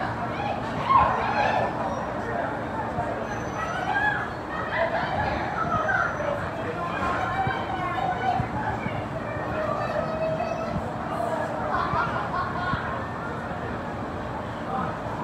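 A ceiling fan whirs steadily overhead.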